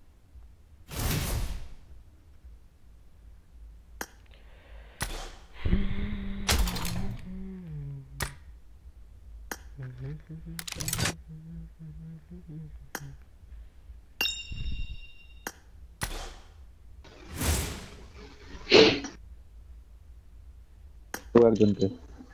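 Short electronic menu clicks and chimes sound now and then.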